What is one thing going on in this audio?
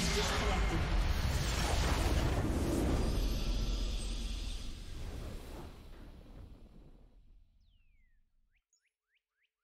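A deep magical blast roars and slowly fades away.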